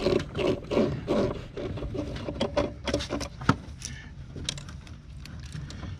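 A screwdriver scrapes and clicks against a small screw.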